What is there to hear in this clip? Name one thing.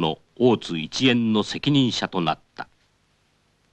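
An elderly man calls out loudly nearby.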